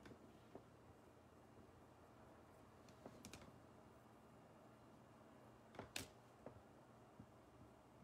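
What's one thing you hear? A felt marker scratches softly on paper.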